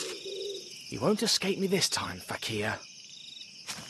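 A young man speaks briefly and threateningly, close by.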